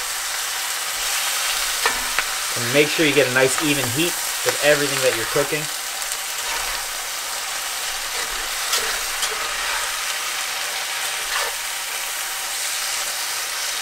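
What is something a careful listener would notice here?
A spatula scrapes against a frying pan.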